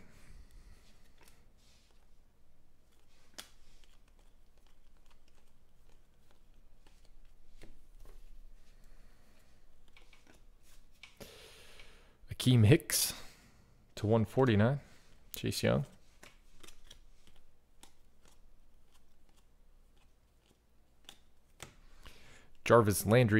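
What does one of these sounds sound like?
Trading cards slide and flick against each other in hand.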